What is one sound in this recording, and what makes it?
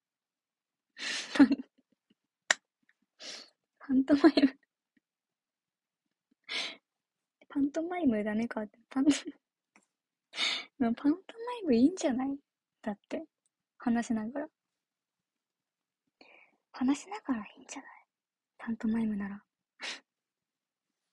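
A young woman talks softly and cheerfully close to a microphone, with pauses.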